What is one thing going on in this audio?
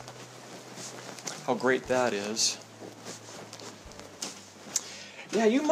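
Footsteps fall softly on carpet.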